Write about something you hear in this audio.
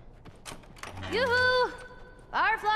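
A young girl speaks nearby.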